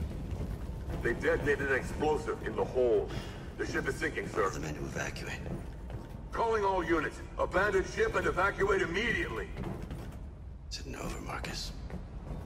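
A man speaks tensely, up close.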